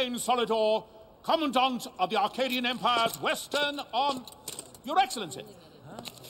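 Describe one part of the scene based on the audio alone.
A man announces loudly, his voice ringing out over a crowd.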